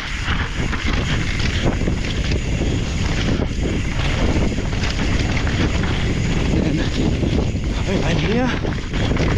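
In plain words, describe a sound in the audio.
Wind rushes past a moving rider outdoors.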